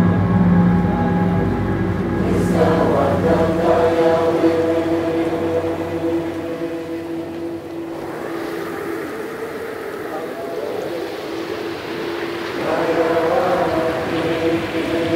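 Electronic dance music plays loudly through speakers.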